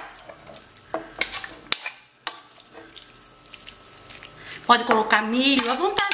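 A spoon scrapes filling across a glass dish.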